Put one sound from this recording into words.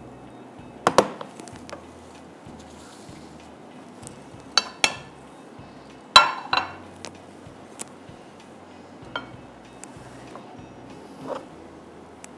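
A metal spoon clinks against a pan.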